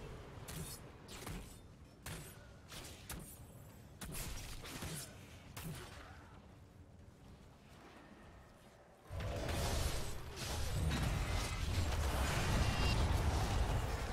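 Game spell blasts and weapon hits crackle in a fast fight.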